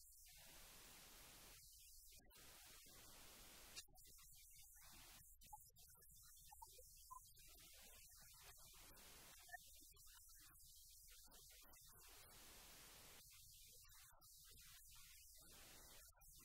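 A middle-aged woman speaks calmly to an audience.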